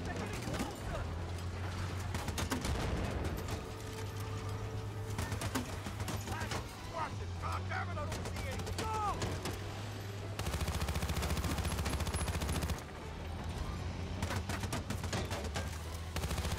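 An armoured vehicle's engine rumbles steadily.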